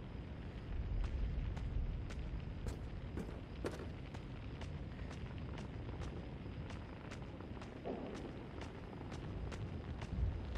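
Footsteps crunch on rubble at a steady walking pace.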